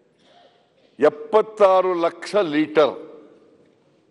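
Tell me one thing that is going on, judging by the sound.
An elderly man speaks with animation into a microphone.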